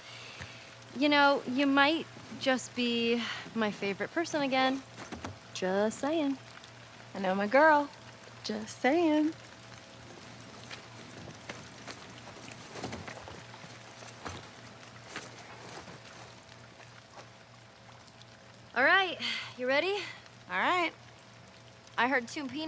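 A young woman speaks warmly and playfully up close.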